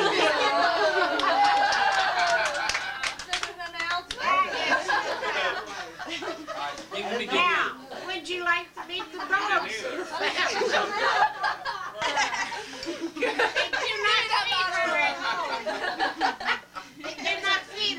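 Several people chatter and laugh close by in a lively room.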